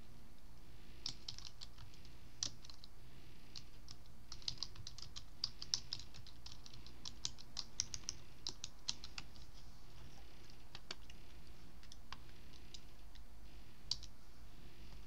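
Keys clatter on a computer keyboard.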